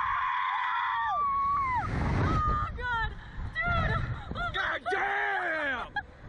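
A young man shouts and gasps up close.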